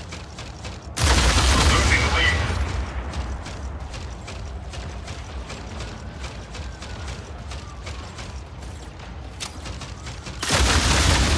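Video game rockets launch with a loud whooshing blast.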